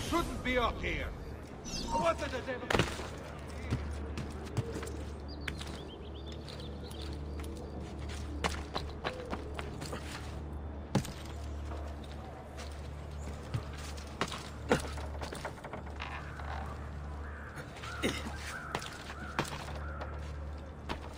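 Footsteps and hand grabs thud sharply on stone and wooden planks.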